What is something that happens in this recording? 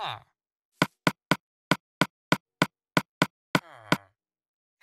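Short, even clicks tick quickly as a cursor moves through a menu.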